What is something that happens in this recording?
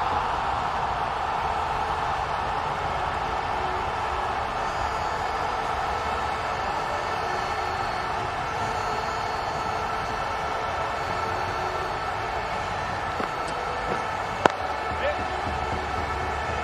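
A crowd murmurs and cheers steadily in a large stadium.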